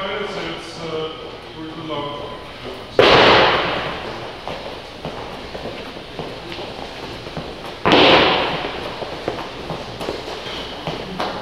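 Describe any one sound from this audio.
Feet thump and shuffle on a rubber floor as people exercise.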